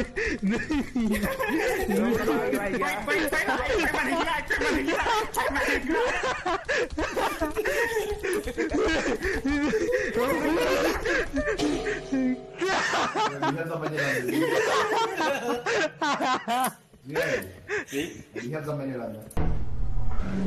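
A young man talks with animation over an online voice call.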